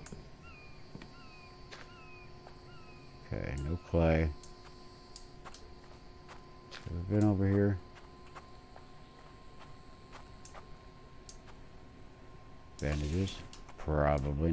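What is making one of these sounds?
Footsteps crunch on dry ground outdoors.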